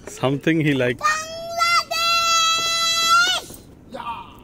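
A young boy shouts a long, high call.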